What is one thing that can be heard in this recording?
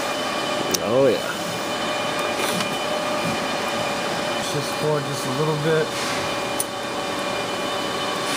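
A screwdriver scrapes and clicks against a metal panel.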